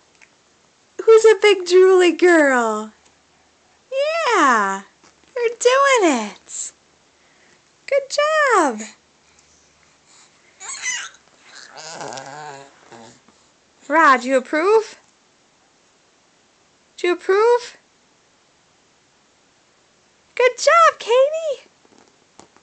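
A baby squeals and babbles loudly, close by, in bursts.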